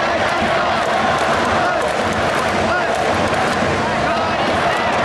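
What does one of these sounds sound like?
A large crowd cheers and chants loudly in an open stadium.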